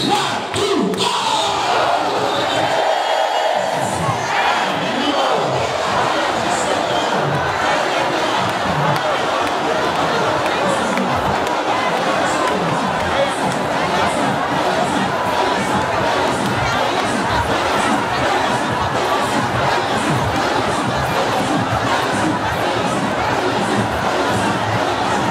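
A large crowd sings and cries out together.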